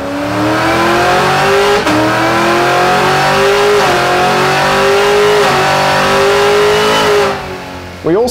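A car engine idles loudly with a deep, steady rumble.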